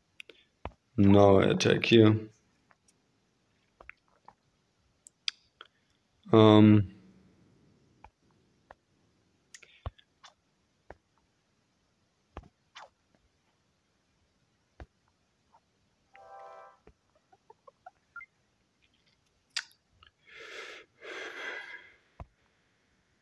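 Short electronic game tones and chimes sound now and then.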